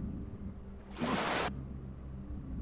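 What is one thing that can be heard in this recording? Water splashes as a swimmer breaks the surface.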